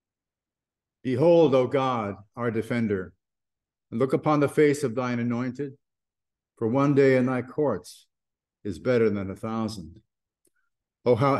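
An elderly man speaks calmly and close through a microphone, in short phrases with pauses.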